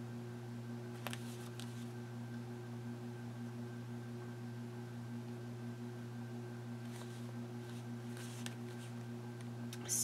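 Plastic sleeves and paper rustle softly under hands.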